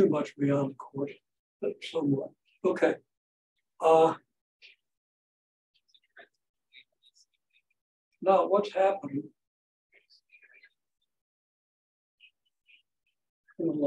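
An elderly man speaks calmly in pauses, close by.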